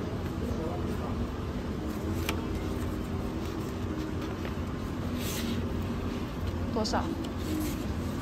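A paper envelope rustles as fingers pull a card out.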